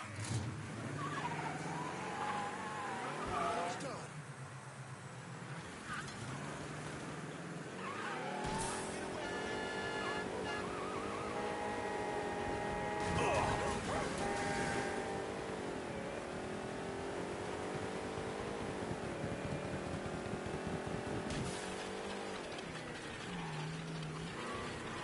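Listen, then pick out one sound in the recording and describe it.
A car engine hums and revs, rising and falling in pitch.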